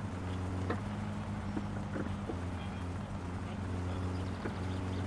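A car engine hums steadily at a low pitch.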